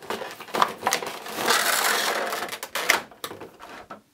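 A plastic tray clicks as it is pulled out of a box.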